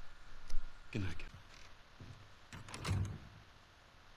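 A door closes with a soft thud.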